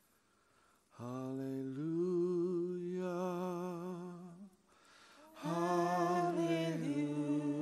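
A man sings through a microphone with long, wavering held notes.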